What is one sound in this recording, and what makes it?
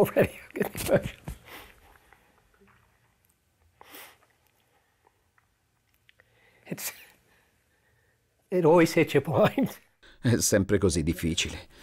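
An older man laughs softly.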